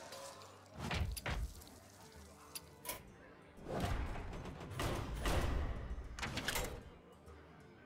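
Game menu sounds chime and whoosh as options are picked.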